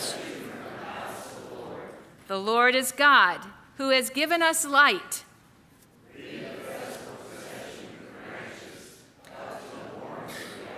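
An older woman reads aloud through a microphone in a large echoing hall.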